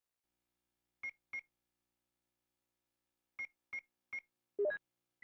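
Short electronic blips sound in quick succession.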